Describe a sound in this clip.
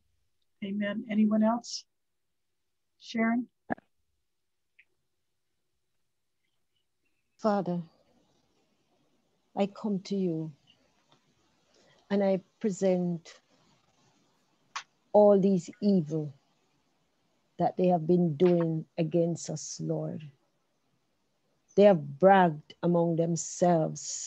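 A woman speaks slowly and with feeling over an online call, pausing often.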